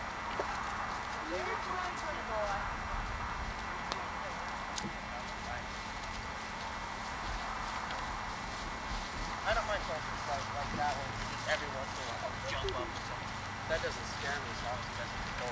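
Wind rumbles across an open field.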